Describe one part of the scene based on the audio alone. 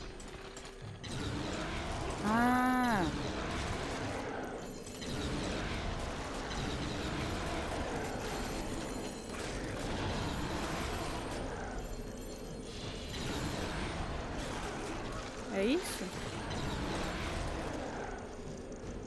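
Fighting game sounds clash and crash with blows and bursts of magic.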